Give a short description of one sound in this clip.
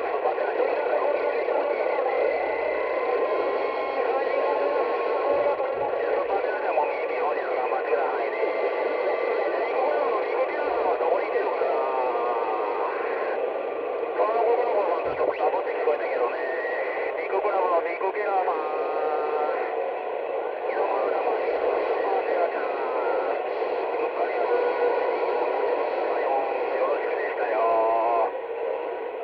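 A garbled radio signal warbles and chirps over the static.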